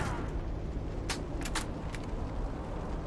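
A gun clicks and clatters as it is reloaded.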